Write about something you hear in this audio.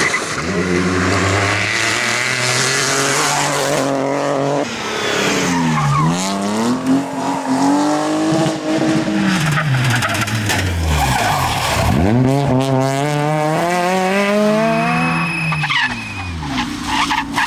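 A rally car engine roars at high revs, shifting gears as it speeds past.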